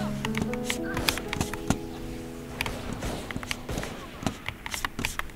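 Keys on a keyboard click rapidly.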